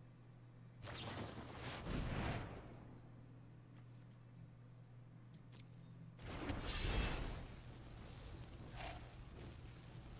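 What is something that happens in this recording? Game sound effects whoosh and crackle with magical zaps.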